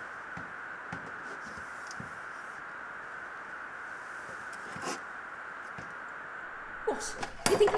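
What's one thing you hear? Hands handle a small plastic device with clicks and knocks close by.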